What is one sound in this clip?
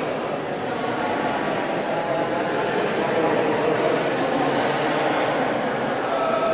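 A woman speaks calmly into a microphone in a large echoing room.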